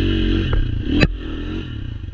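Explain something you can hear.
A sharp thump sounds as a dirt bike bumps over the trail.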